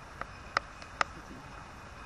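A crow caws nearby.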